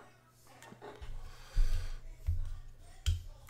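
Fingers pick up a knife with soft knocks.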